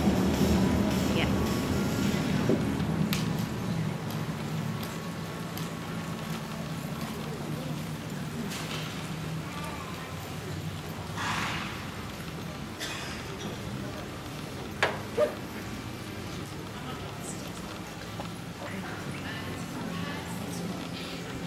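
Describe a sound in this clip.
A horse's hooves thud softly on soft ground at a walk.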